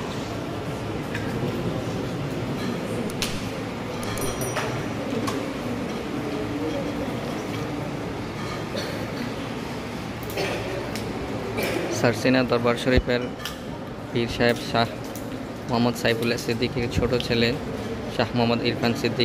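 Many children murmur and chatter in a large echoing hall.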